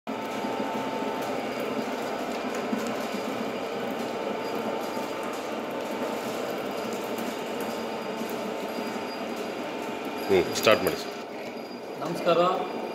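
A motor-driven stone grinder hums and churns seeds steadily.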